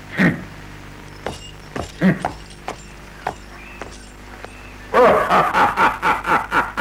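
A man speaks loudly and with animation, heard through an old, thin recording.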